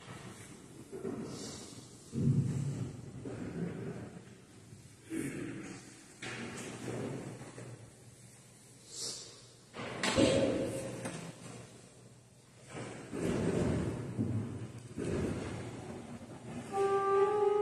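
An elderly man talks quietly at a distance in an echoing room.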